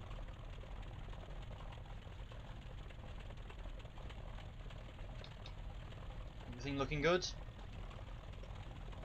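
An aircraft engine idles with a low, steady rumble.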